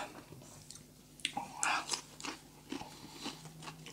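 A man crunches into a fresh cucumber slice.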